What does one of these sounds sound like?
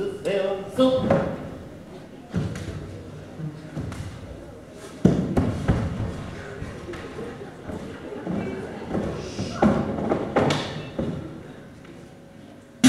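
Bare feet thump and step on a wooden stage.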